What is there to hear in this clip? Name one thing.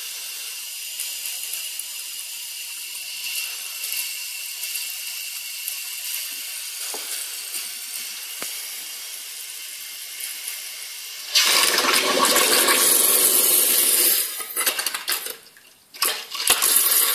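Air hisses from a hose and bubbles through liquid in a bucket, suddenly growing loud and churning.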